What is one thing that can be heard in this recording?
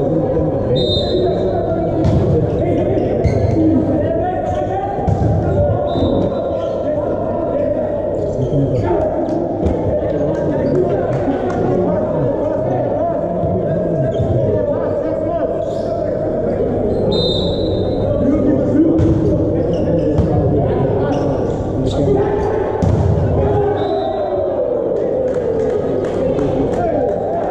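Volleyball players strike the ball with their hands in a large echoing hall.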